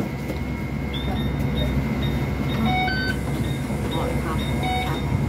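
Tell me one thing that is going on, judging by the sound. A card reader beeps as passengers tap on.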